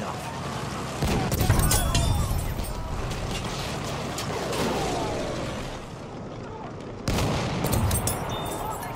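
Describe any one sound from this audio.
A heavy gun fires with loud booms.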